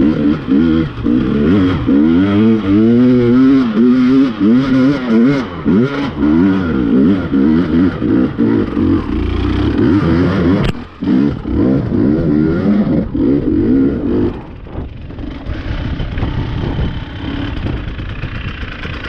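A dirt bike engine revs hard up and down, then settles to a low idle.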